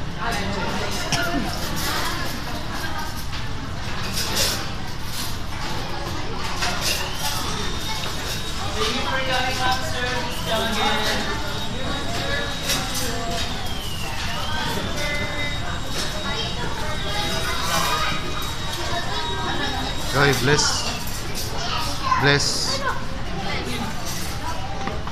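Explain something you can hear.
Many people chatter around in a busy room.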